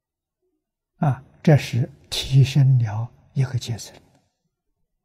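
An elderly man speaks calmly and slowly, close to a microphone.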